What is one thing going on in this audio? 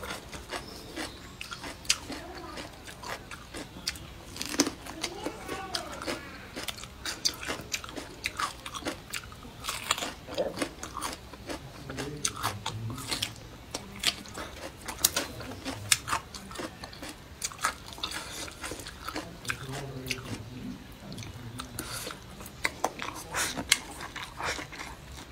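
A young woman chews crunchy food close to the microphone, with wet smacking mouth sounds.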